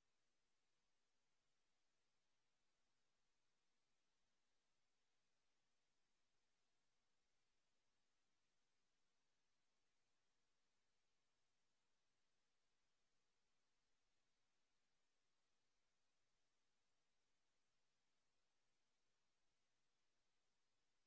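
A large audience murmurs quietly.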